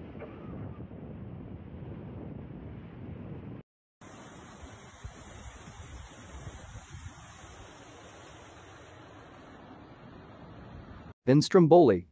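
Floodwater rushes loudly along a street.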